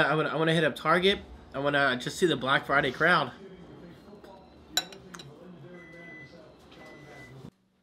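A fork scrapes a plate.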